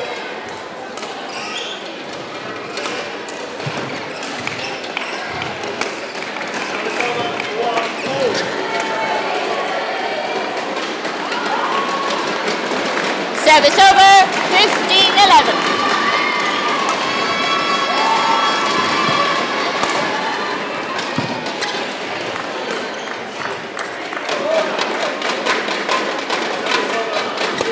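A crowd in a large hall murmurs and cheers.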